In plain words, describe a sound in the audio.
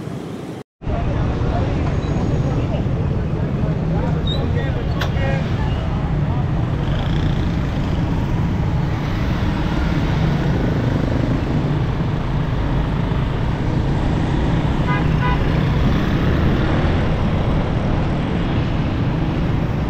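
Motorbike and rickshaw engines rumble steadily along a busy street.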